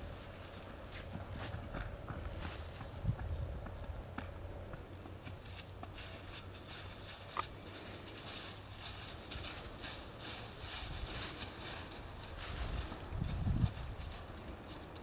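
A horse's hooves thud steadily on the ground as it trots.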